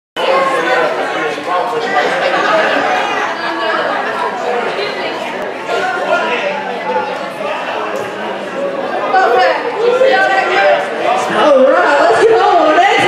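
A crowd of men, women and children chatters all around in a large echoing hall.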